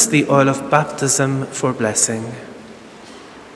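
A man speaks slowly and solemnly through a microphone in a large echoing church.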